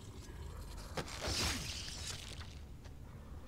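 A sudden struggle ends with a heavy blow.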